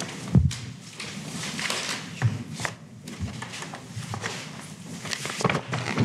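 Papers rustle and shuffle close to a microphone.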